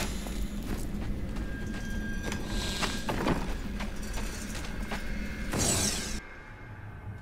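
A magical portal hums and whooshes.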